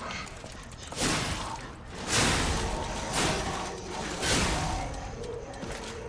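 Swords swing and clash in a fight.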